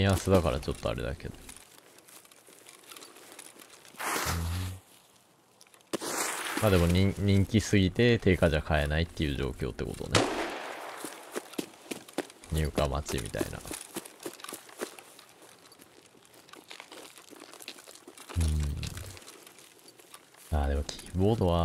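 A young man talks animatedly, close to a microphone.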